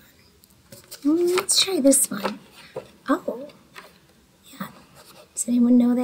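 Paper cards rustle and slide.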